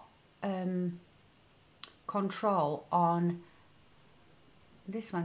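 A woman speaks calmly and with expression, close to a microphone.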